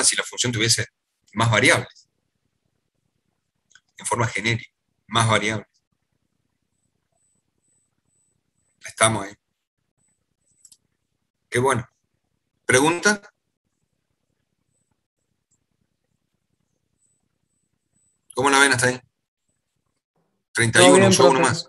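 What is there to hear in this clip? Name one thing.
An elderly man speaks calmly in short phrases through a computer microphone, with long pauses.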